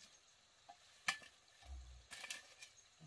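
A shovel scrapes into soil.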